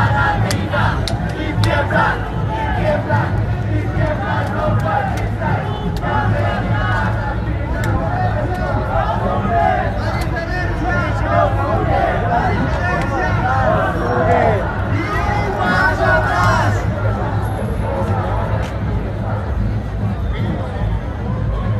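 A large crowd chatters and cheers outdoors in a busy street.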